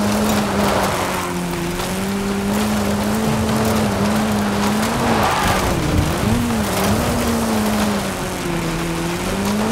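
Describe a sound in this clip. Tyres crunch and rumble over rough dirt and gravel.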